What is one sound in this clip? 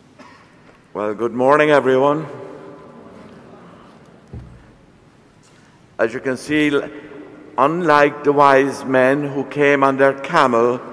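An elderly man chants in a steady, wavering tone through a microphone in an echoing hall.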